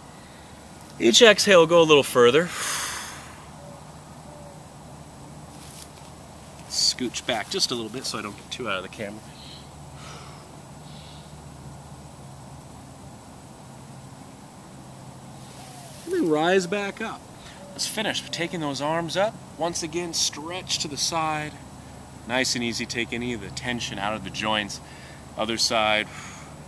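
A man speaks calmly and clearly into a close microphone, outdoors.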